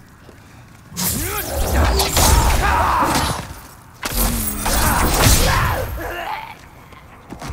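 A magic blast crackles and booms.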